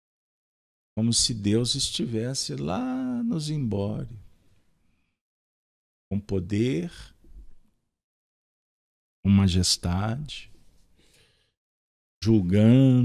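A man speaks calmly and clearly into a microphone, in short phrases with pauses.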